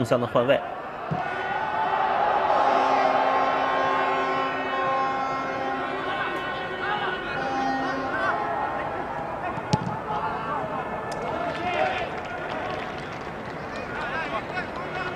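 A large crowd cheers and roars in a big open stadium.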